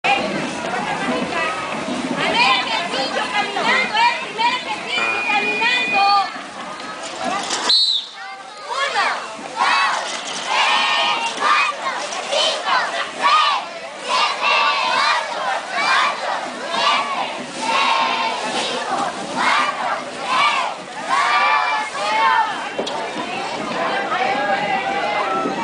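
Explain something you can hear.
A crowd of young children chant loudly outdoors.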